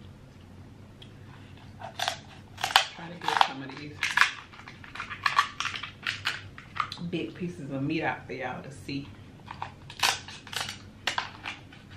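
A young woman chews and smacks her lips loudly close to a microphone.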